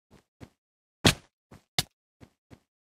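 A sword strikes a player with sharp hits.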